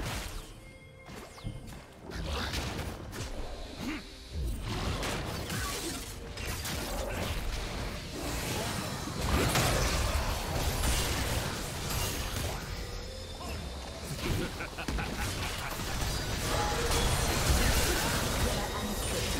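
Game spell effects whoosh, crackle and blast in quick bursts.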